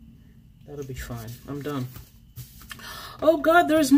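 Paper rustles softly under fingers.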